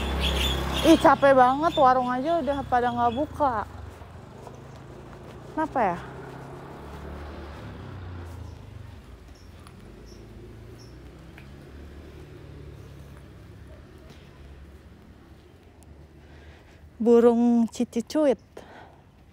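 A young woman speaks close to a phone microphone.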